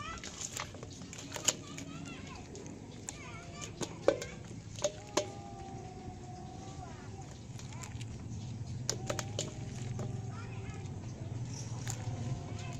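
Wet fish slap and rustle against each other as a hand stirs through them in a metal basin.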